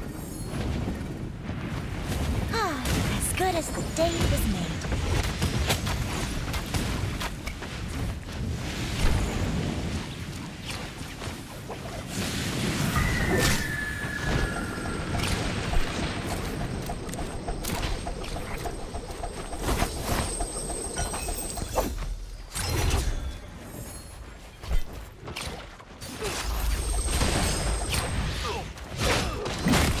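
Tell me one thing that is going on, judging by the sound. Magic blasts and sword strikes crackle and whoosh in quick bursts.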